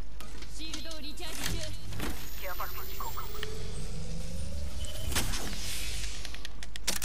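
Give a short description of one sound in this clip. An electric charging device hums and crackles as it powers up.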